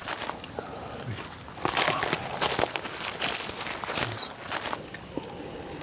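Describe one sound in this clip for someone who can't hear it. Branches and dry leaves rustle as people push through undergrowth outdoors.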